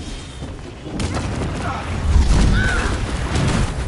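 Heavy blows land with deep thuds.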